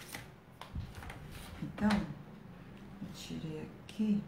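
Stiff paper rustles as it is handled.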